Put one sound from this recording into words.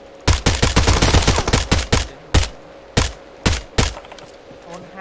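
Rapid gunshots crack in quick bursts, then single shots ring out.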